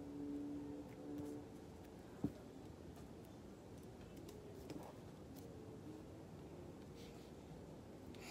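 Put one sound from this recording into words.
Cards slide and tap softly on a table.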